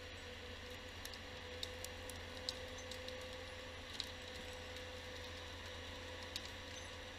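Wooden branches crack and snap as a machine handles a fallen tree.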